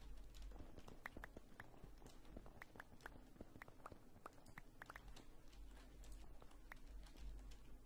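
Footsteps tap quickly on hard stone.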